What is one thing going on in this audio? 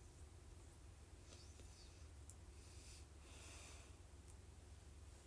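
A young woman whispers softly close to the microphone.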